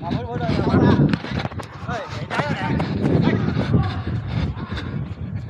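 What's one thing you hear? Young men shout to each other during a football match outdoors.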